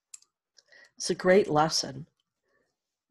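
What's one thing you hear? A middle-aged woman speaks warmly and calmly, close to a microphone.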